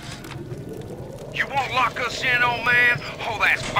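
Flames crackle and hiss.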